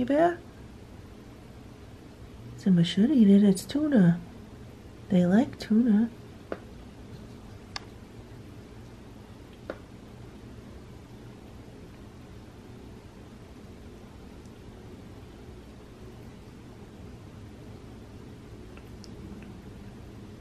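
A cat licks and chews food with soft wet smacks.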